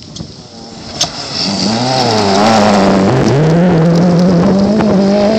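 Gravel sprays and rattles from the car's tyres as it passes.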